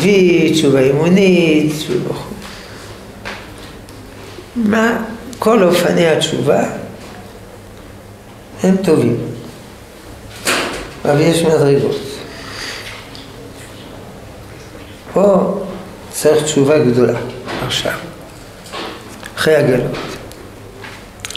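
An elderly man speaks calmly and slowly in bursts, close by, with pauses between phrases.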